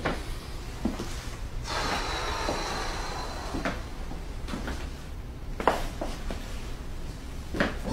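A young man speaks briefly and quietly.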